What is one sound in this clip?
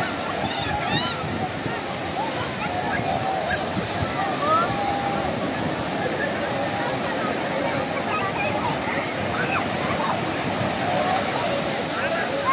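Waves crash and wash steadily onto a beach.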